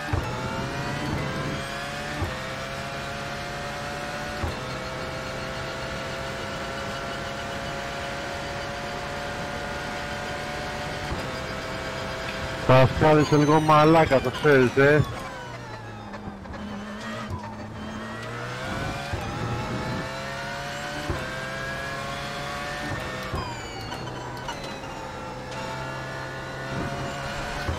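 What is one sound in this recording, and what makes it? A racing car engine roars, climbing in pitch and dropping sharply with each gear change.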